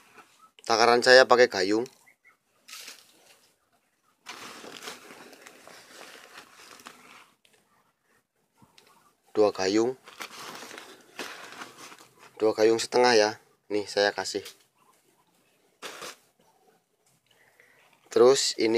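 Loose sawdust pours softly from a plastic cup onto a sack.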